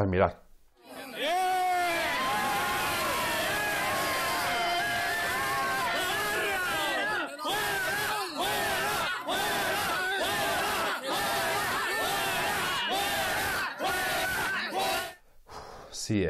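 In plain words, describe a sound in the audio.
A crowd shouts and chants loudly.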